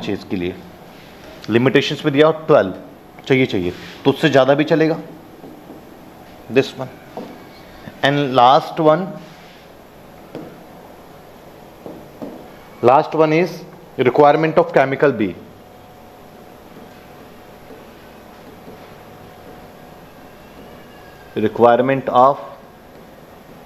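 A man speaks close to a microphone in short, emphatic bursts with pauses between them.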